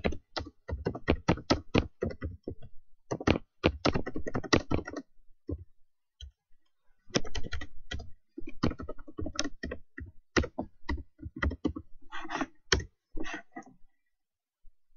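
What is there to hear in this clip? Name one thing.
Keys on a keyboard click rapidly as someone types.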